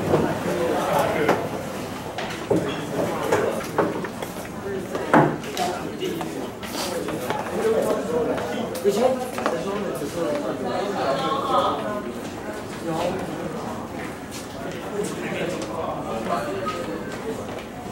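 Young people chatter and talk over one another nearby.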